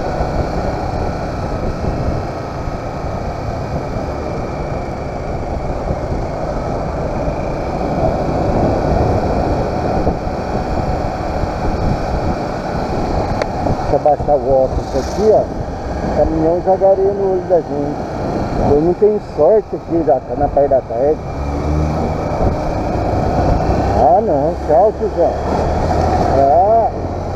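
A motorcycle engine hums and revs up and down.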